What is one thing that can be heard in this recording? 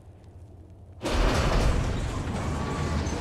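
A heavy iron gate rumbles and grinds open.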